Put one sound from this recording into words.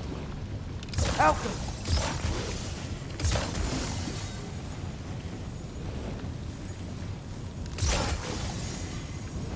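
A magic orb hums and crackles with energy.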